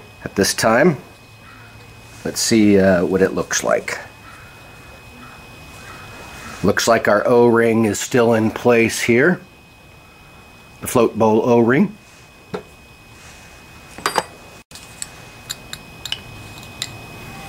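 Metal parts clink softly as they are handled.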